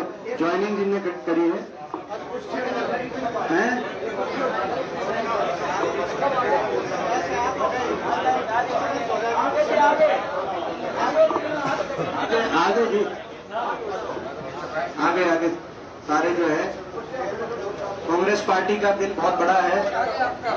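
A crowd of men chatters in a large room.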